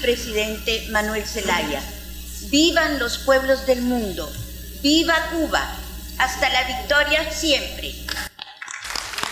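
An elderly woman speaks with animation into a microphone.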